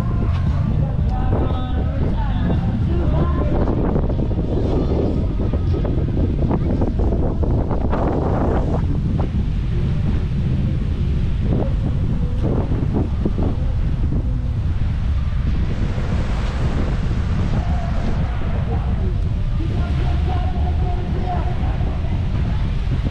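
Wind buffets loudly outdoors.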